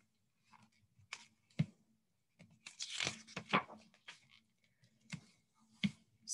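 Book pages rustle as they are turned and handled.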